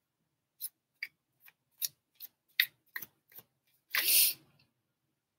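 Cards rustle and click in a young woman's hands.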